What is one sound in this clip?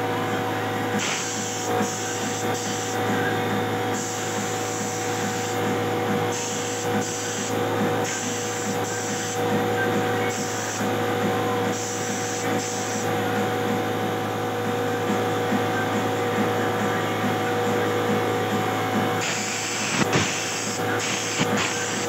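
A spray gun hisses in short bursts.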